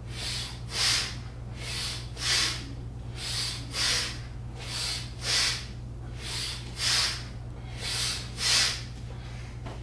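A man breathes deeply in and out in a steady rhythm, close by.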